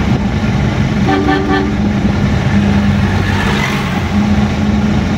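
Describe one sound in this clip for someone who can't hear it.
A heavy truck rumbles past close by.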